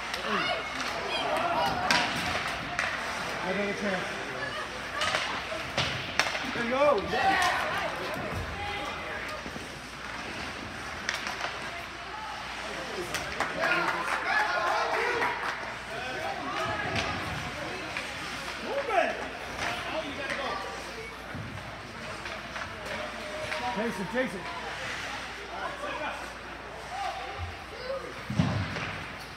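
Spectators in the stands talk and call out, echoing in a large hall.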